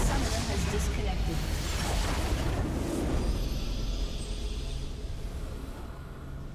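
A huge crystal explodes with a deep, rumbling boom.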